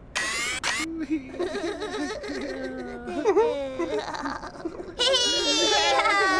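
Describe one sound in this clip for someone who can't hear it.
Childlike voices chatter and squeal playfully.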